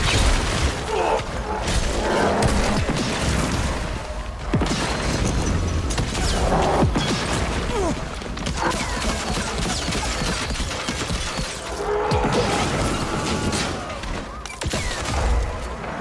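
Weapons clash and strike loudly in combat.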